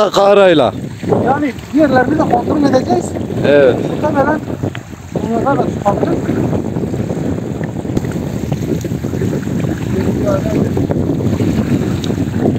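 Small waves lap against a stony shore.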